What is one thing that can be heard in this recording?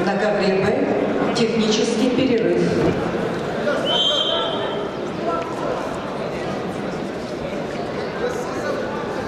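A large crowd murmurs and shouts in an echoing arena.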